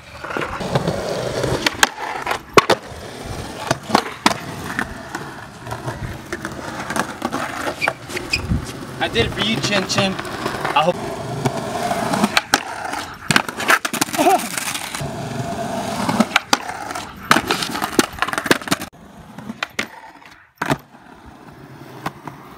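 Skateboard wheels roll and rumble on concrete.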